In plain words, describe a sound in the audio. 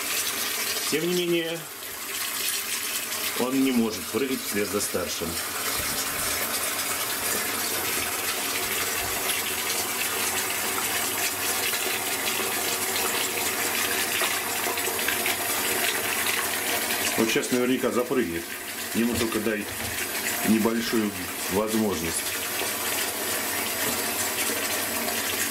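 Water splashes and laps as small animals paddle through it.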